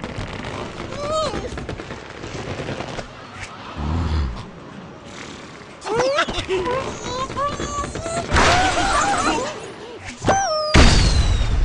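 A cartoon bird squawks in short, rising cries.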